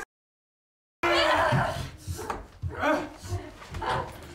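A man and a woman struggle and thud against a door.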